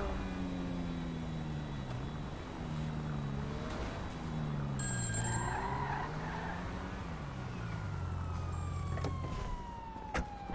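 A car engine hums and revs at low speed.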